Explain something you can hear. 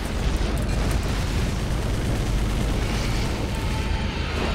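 Explosions boom and rumble loudly.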